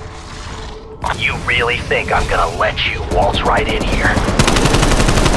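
A man's voice taunts through a loudspeaker.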